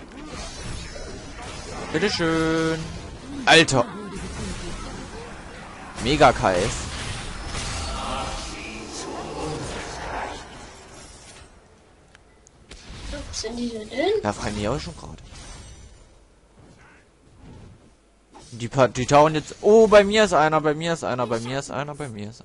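Game combat effects whoosh, zap and crackle.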